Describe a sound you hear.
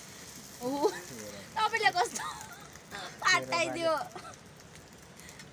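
A metal spatula scrapes against a frying pan.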